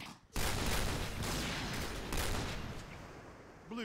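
A rifle is drawn with a short metallic clatter.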